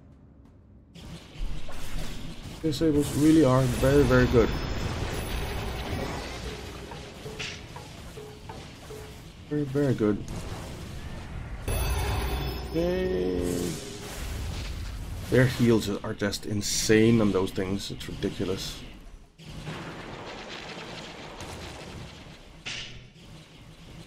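Fantasy battle sound effects clash, zap and crackle.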